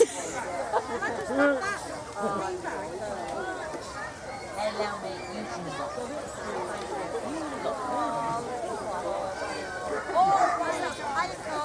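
A crowd of men and women chat nearby outdoors.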